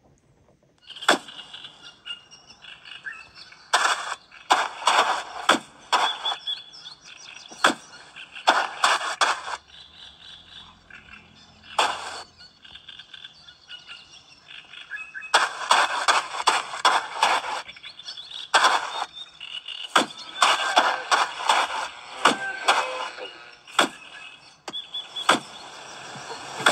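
A handheld video game plays bursts of sound effects through a small speaker.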